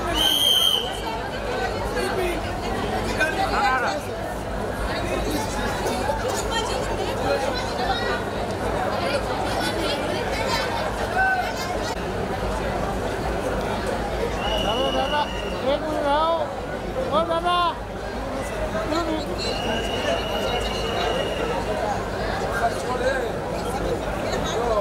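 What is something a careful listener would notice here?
Women talk and laugh close by.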